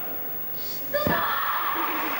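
A gymnast lands with a thud onto a mat in a large echoing hall.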